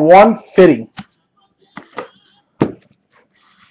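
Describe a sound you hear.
A stiff card taps against a hard tabletop.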